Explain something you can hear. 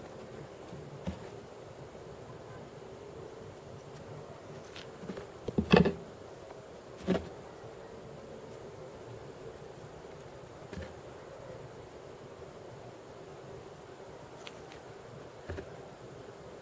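Beads click and tap softly as they are set down on a table.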